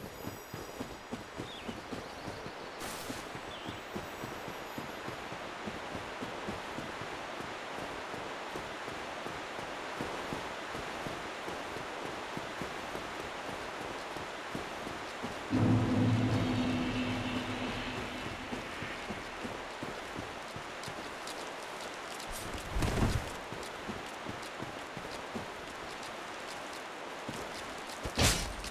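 Footsteps crunch quickly over ground and stone.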